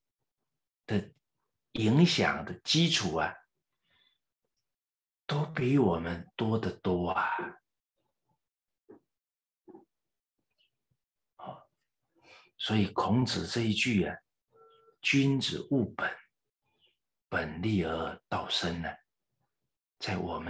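A middle-aged man speaks calmly and with emphasis into a close microphone, pausing often.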